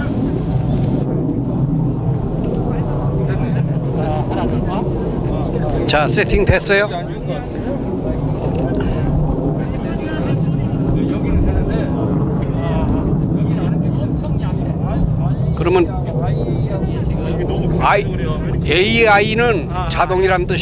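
A man speaks to a group of people.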